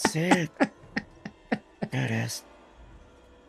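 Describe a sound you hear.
A young man laughs loudly and heartily close to a microphone.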